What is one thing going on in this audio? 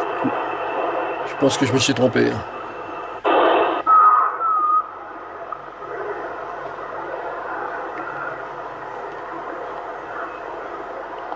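A radio receiver hisses with steady static from a loudspeaker.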